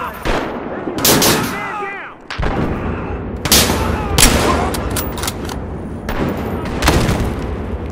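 Gunshots crack loudly with echoing tails.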